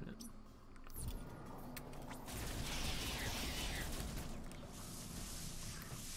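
Blasts from a video game fire and crackle.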